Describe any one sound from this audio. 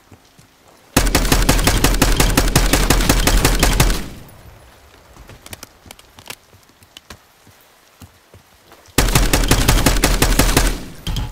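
A rifle fires rapid bursts of automatic shots.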